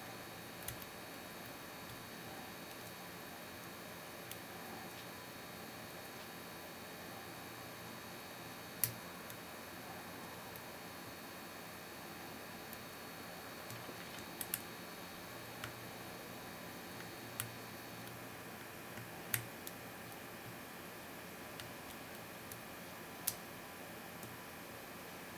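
Metal lock picks click and scrape faintly inside a padlock.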